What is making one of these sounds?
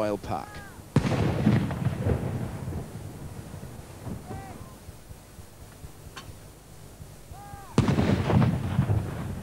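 Cannons fire loud booming blasts that rumble and echo outdoors.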